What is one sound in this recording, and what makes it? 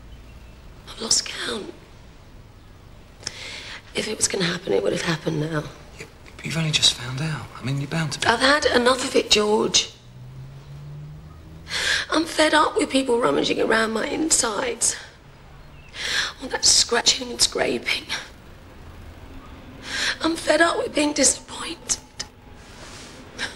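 A woman speaks tearfully in a shaky voice.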